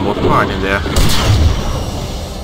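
A teleporter fires with a sharp whoosh.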